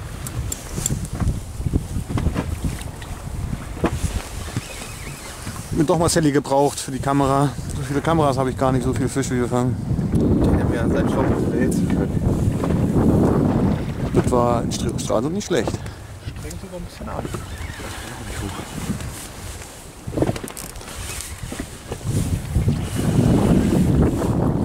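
Waves splash against a small boat.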